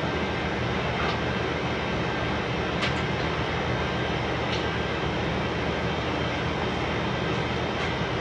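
A metal panel scrapes and clanks as it is dragged across a concrete floor.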